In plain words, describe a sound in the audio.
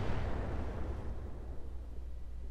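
An explosion booms and rumbles away.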